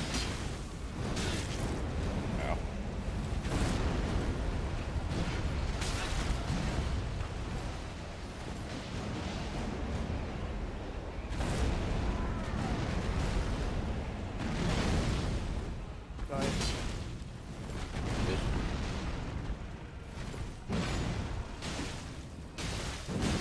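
Blades clash and strike with loud impacts.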